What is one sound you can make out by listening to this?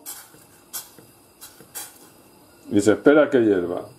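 A spatula scrapes against a metal pan.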